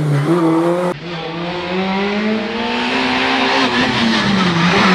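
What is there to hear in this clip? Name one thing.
A car engine revs loudly through a bend and accelerates away.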